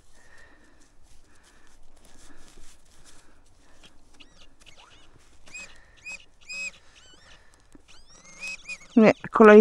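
Pruning shears snip through roots in the soil.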